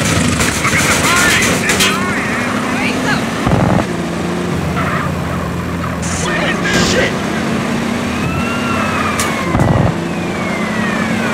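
A car engine drones steadily as the car drives.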